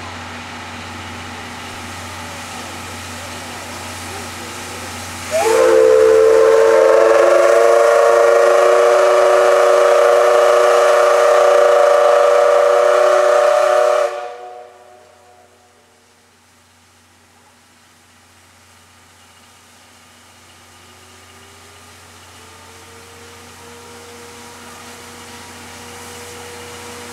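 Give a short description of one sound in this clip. A steam locomotive chugs slowly closer.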